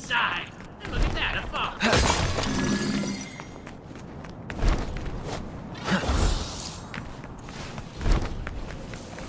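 Heavy blows land with loud booming thuds.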